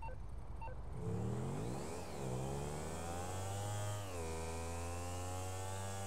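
A motorcycle engine revs up and roars as it speeds along, its pitch rising and dropping with the gear changes.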